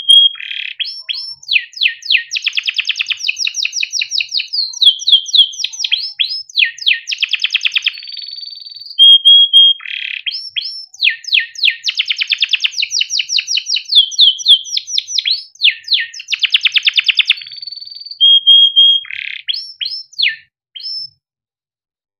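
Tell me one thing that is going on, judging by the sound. A canary sings close by in long, fast trills and chirps.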